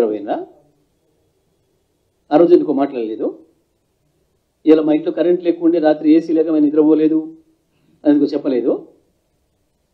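A man speaks into a microphone in calm, measured phrases with pauses.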